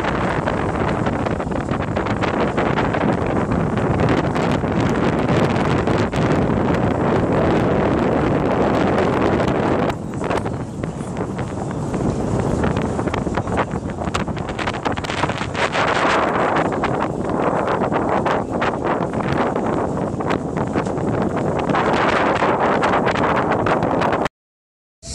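Water rushes and splashes against a moving boat.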